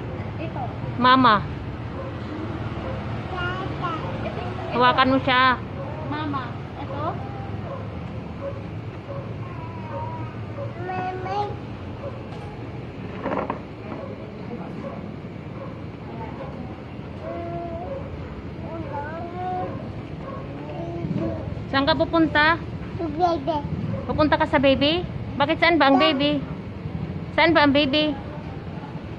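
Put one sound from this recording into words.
A little girl squeals and babbles close by.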